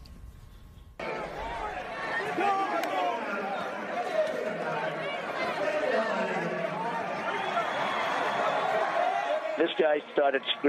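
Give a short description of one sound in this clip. A crowd shouts and clamors in a noisy scuffle.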